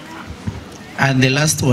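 A young man speaks loudly through a microphone over a loudspeaker, outdoors.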